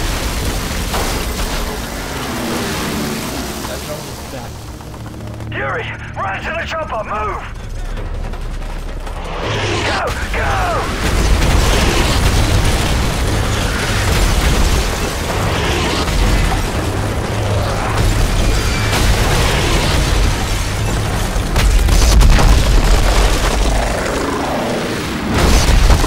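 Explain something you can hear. Rifle shots crack in bursts.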